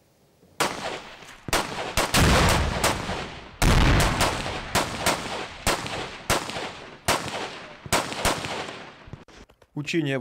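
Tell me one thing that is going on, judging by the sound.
Rifles fire sharp shots outdoors, echoing off the hills.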